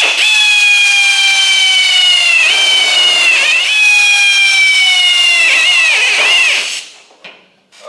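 A power tool whines loudly, its pitch slowly sinking under load.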